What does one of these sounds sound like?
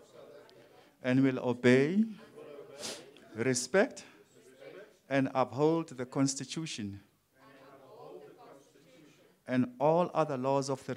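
A group of adults reads aloud together.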